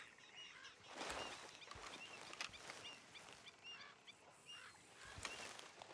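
A man's footsteps rustle softly through grass.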